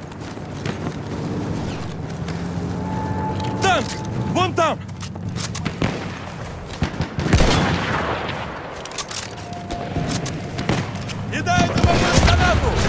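Distant gunfire and explosions rumble steadily.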